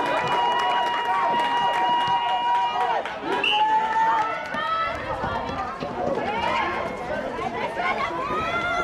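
Sneakers squeak and thud on a court.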